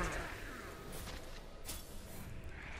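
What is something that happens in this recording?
A heavy blade clashes in close combat.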